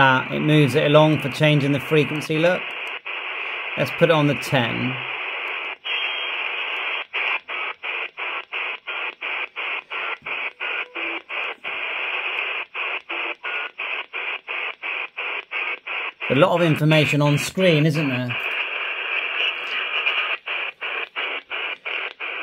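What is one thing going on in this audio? A handheld radio hisses with static that cuts in and out in quick, regular breaks as it scans.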